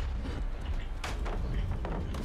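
A heavy blow strikes with a loud thud.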